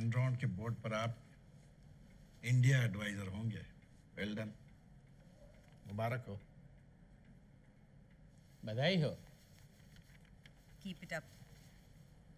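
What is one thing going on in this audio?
A man speaks in a low, serious voice close by.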